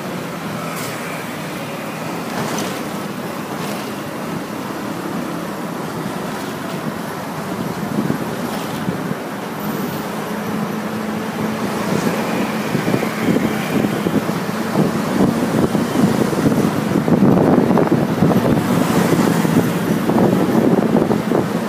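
Traffic rumbles past on a busy road.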